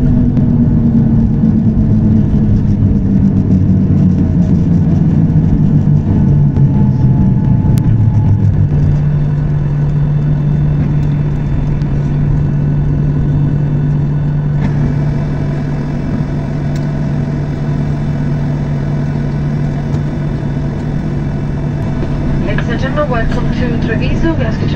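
Jet engines roar loudly and steadily from inside an aircraft cabin.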